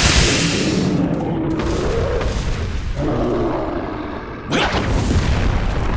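A large monster roars loudly.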